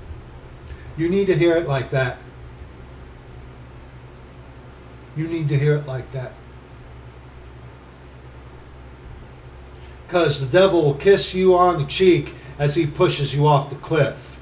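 A middle-aged man talks calmly and close to the microphone, in short bursts with pauses.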